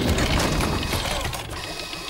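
A mechanical arm whirs as it grabs a sack.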